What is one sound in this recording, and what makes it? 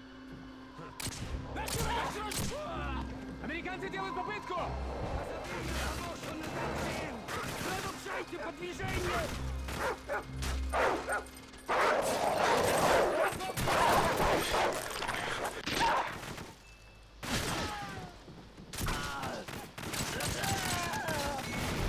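Gunshots fire rapidly nearby.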